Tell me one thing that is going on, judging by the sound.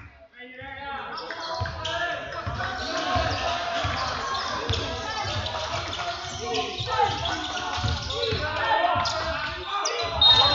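A basketball bounces with dull thuds.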